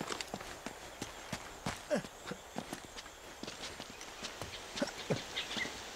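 Footsteps run quickly over soft ground.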